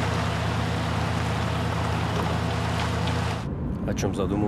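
A car engine hums as a car drives along a road.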